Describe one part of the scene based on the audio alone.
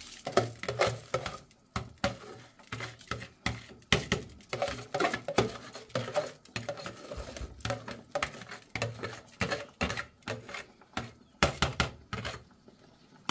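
A metal spoon scrapes and taps against a plastic bowl.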